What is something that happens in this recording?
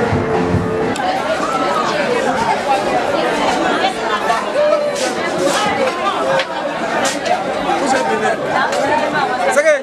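A crowd of men and women chatters loudly all around outdoors.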